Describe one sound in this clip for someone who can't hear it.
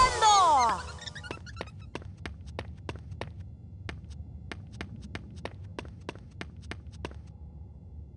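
Footsteps tap steadily on a stone floor.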